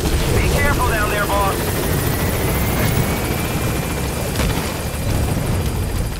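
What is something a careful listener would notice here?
A low wind rumbles steadily outdoors.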